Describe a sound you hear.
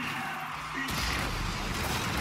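A rocket boost roars with a burst.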